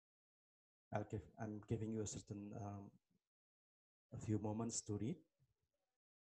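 A man speaks calmly into a nearby microphone, with pauses.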